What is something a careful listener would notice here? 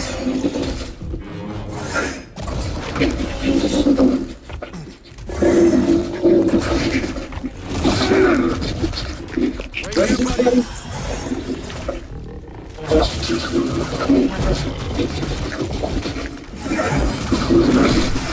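Light sabers hum and swish through the air.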